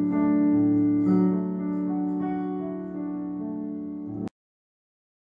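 An electric piano plays a chord.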